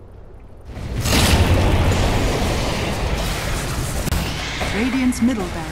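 Game spells burst and crackle during a battle.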